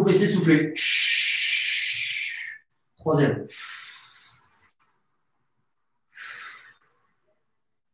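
A man exhales hard in short bursts close by.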